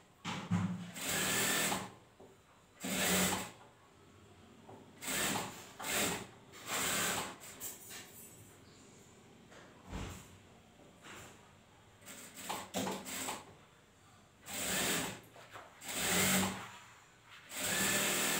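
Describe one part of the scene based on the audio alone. A sewing machine whirs in short bursts, starting and stopping.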